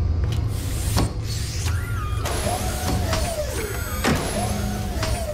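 A heavy metal chest clanks and slides open.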